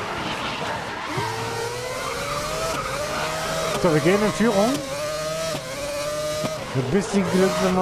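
Tyres squeal as a racing car drifts through tight corners.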